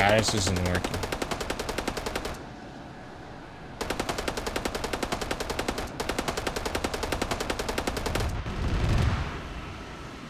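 Explosions boom on the ground.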